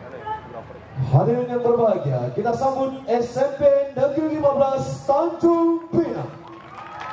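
A woman sings loudly through a loudspeaker outdoors.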